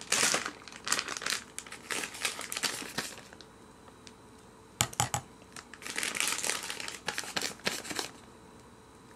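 A metal spoon clinks against a glass.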